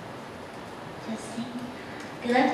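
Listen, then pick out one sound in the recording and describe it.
A woman speaks calmly into a microphone in a large, echoing hall.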